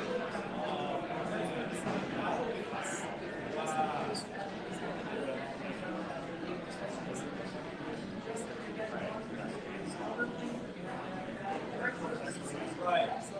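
Several men talk at once around a table, in a murmur of overlapping conversation.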